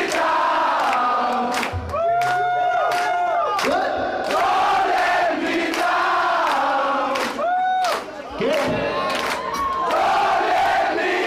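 A man sings loudly into a microphone over a live rock band.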